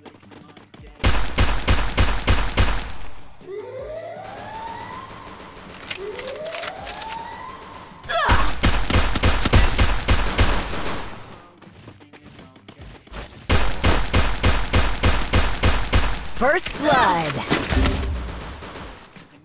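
Rapid gunshots fire in short, loud bursts.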